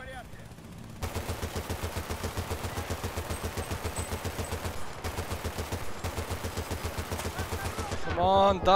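A heavy machine gun fires in a long, rapid stream.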